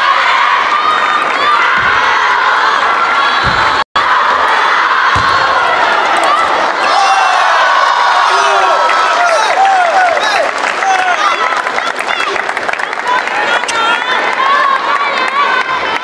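A crowd cheers and chatters loudly in a large hall.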